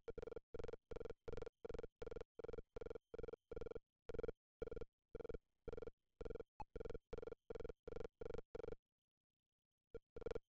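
A retro video game buzzes in short, evenly spaced electronic pulses.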